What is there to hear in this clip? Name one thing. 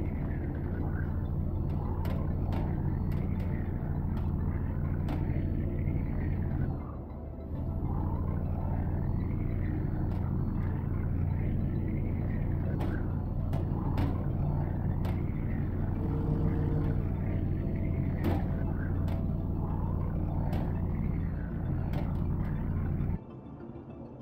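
A sci-fi tractor beam hums steadily with a low, warbling drone.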